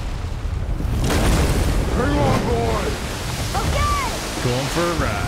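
Water crashes and splashes loudly around a wooden boat.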